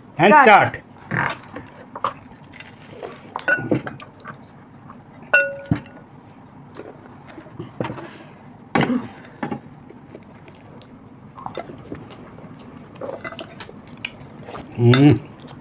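People crunch crispy food while chewing loudly.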